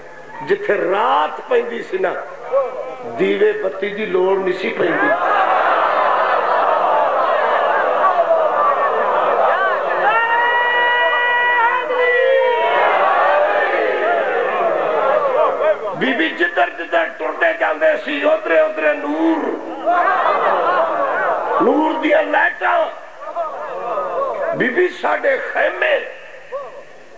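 A man speaks passionately into a microphone, heard through loudspeakers in an echoing space.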